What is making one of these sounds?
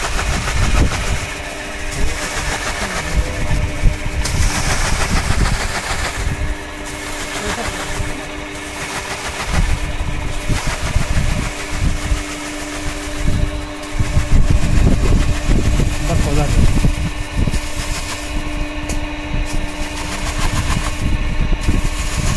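Broom grass swishes and rustles against a spinning drum.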